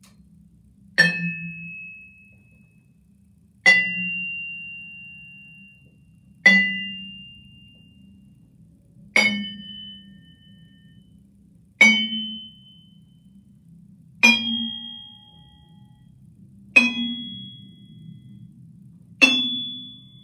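Single vibraphone notes ring out one at a time and slowly fade.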